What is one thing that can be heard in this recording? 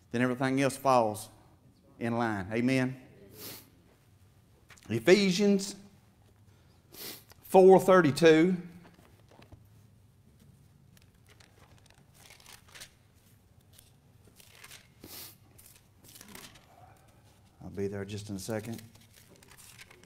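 A middle-aged man speaks calmly through a microphone in a large echoing room.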